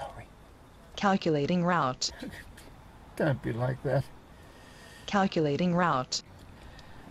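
An elderly man speaks quietly and sadly, close by.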